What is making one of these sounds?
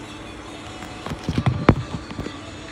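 A phone knocks and rustles as it is handled close by.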